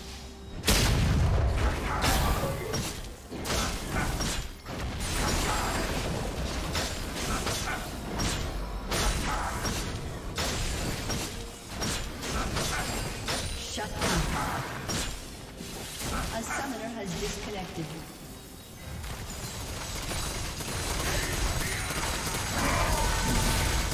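Video game spell effects crackle and blast during a fight.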